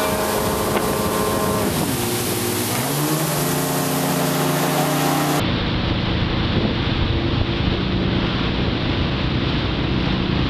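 Water rushes and churns in a boat's wake.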